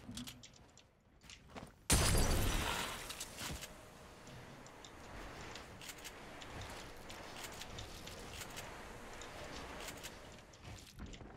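Building pieces snap into place in a video game.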